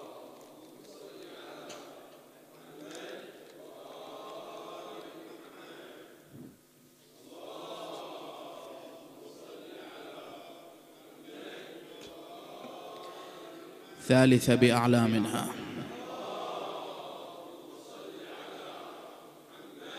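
A man speaks calmly and steadily into a microphone.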